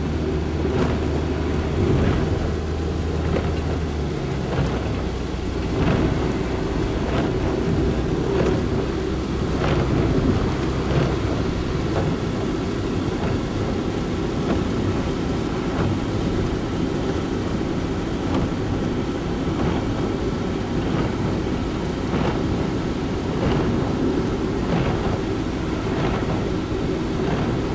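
Windscreen wipers thump back and forth at regular intervals.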